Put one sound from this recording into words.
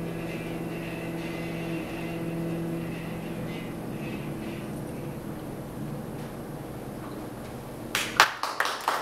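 A cello is bowed in long, low notes.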